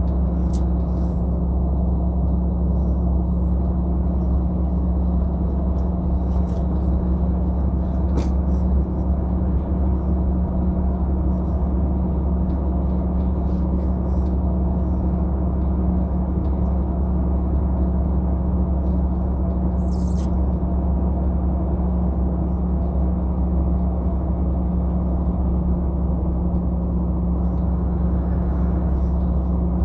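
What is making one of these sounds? A vehicle's engine hums steadily from inside the cab as it drives along a road.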